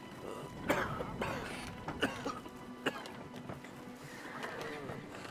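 A wooden cart's wheels rattle and creak over a rocky path.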